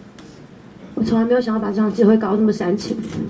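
A young woman speaks emotionally into a microphone, close and amplified.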